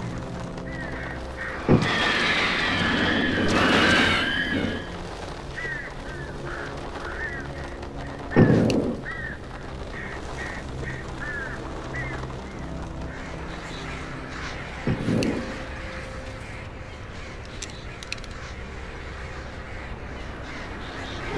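Footsteps run over leaves and forest ground.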